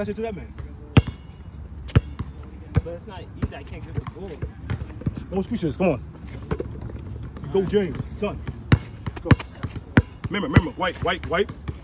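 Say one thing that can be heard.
A basketball bounces on asphalt.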